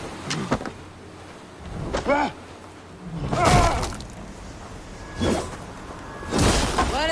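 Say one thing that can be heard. Weapons strike and thud in a close fight.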